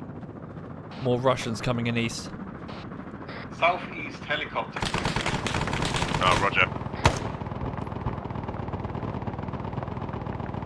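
A helicopter's rotor drones overhead.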